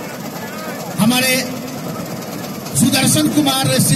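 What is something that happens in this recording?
A crowd cheers and shouts loudly in short bursts.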